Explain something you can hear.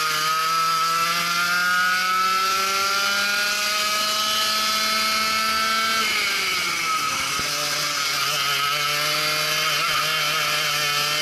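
A kart engine roars up close, rising in pitch as it speeds up and dropping as it slows for a bend.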